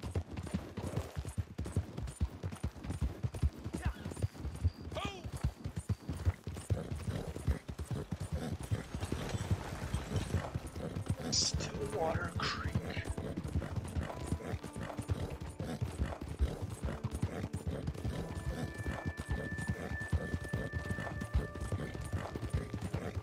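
Hooves pound steadily on a dirt road as a horse gallops.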